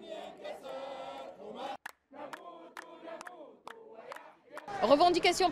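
A crowd of men and women chants loudly outdoors.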